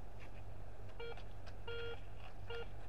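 A metal detector beeps in short, repeated tones.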